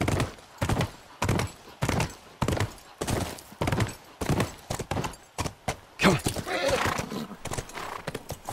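A horse gallops, its hooves pounding on pavement.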